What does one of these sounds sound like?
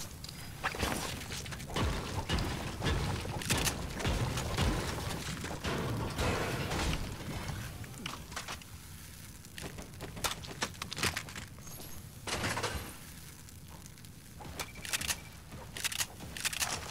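Items are picked up with short chiming clicks.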